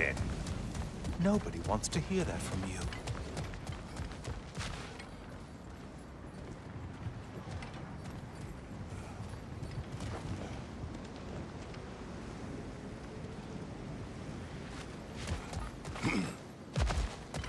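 Heavy footsteps crunch on rocky ground.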